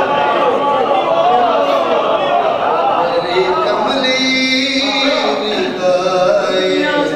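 A man recites with feeling into a microphone, heard through loudspeakers in an echoing hall.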